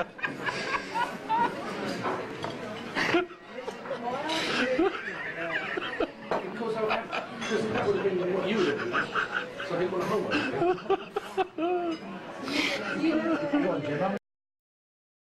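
A middle-aged man laughs close by.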